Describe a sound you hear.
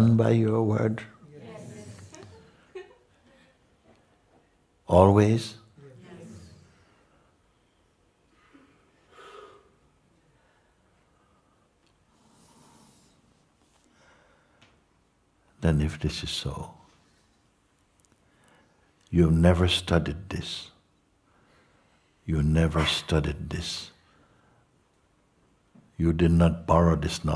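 An older man speaks slowly and calmly through a microphone, with long pauses.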